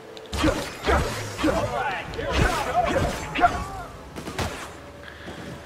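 Energy blasts burst with crackling bangs.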